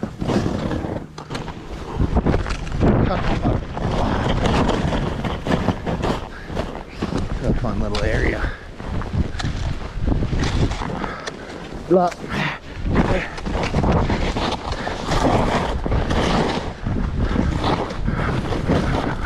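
Skis hiss and swish through deep powder snow.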